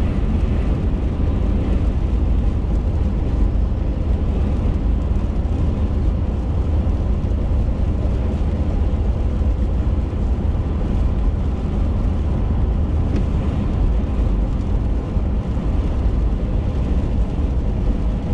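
Raindrops patter on a windshield.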